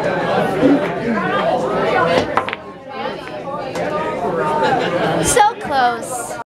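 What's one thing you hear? A cue strikes a pool ball.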